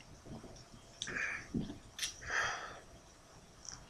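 A young man breathes out heavily and gasps close by.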